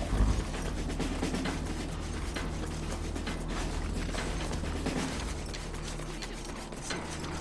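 Footsteps thud on a hard floor in a game.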